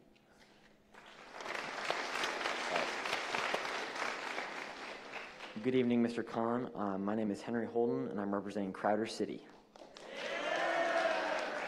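A large audience chatters and murmurs.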